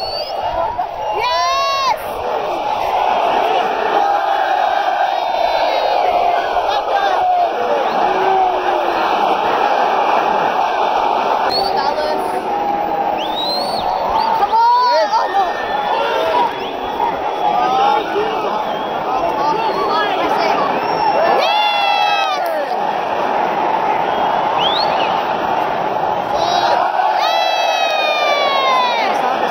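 A large stadium crowd roars and chants throughout, loud and close.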